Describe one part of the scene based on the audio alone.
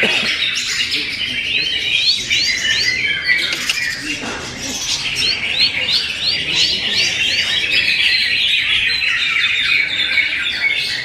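A small bird chirps and twitters rapidly with quick rising whistles.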